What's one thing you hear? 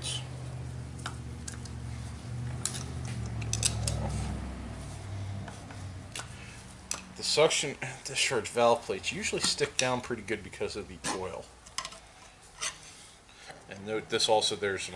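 A metal tool clicks and scrapes against a metal part.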